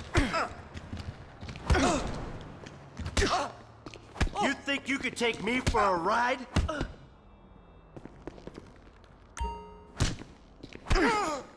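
Punches land with heavy thuds.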